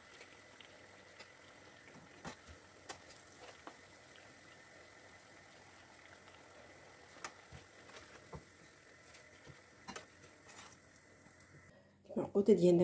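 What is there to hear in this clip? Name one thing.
Oil sizzles and crackles steadily as food fries.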